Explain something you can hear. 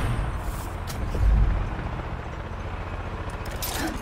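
A grappling hook fires and clanks onto rock.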